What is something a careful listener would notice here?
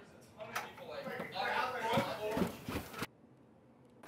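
Footsteps thud down wooden stairs.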